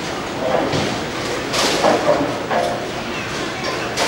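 A bowling ball knocks as it rolls up a ball return.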